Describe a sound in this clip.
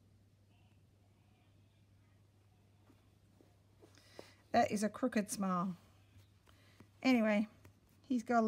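Thread rustles softly as a needle pulls it through fabric.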